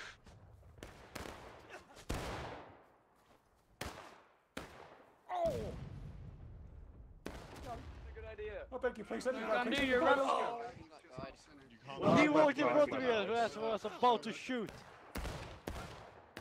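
Rifles fire in sharp, echoing cracks.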